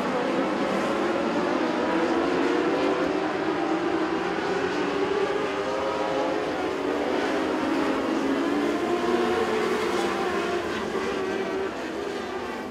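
Engines rev and whine as cars accelerate out of a turn.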